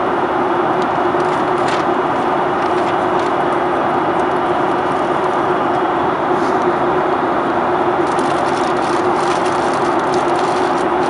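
A jet engine roars steadily from inside an airliner cabin.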